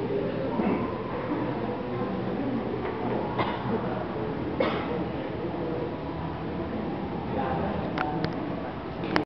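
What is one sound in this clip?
People in an audience murmur quietly.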